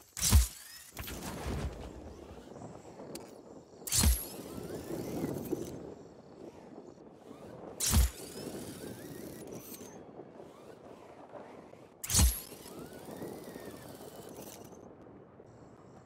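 Wind rushes past steadily during a parachute glide.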